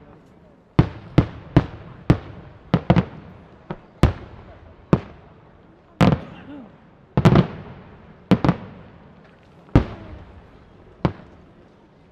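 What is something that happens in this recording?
Fireworks burst with loud booming bangs that echo away outdoors.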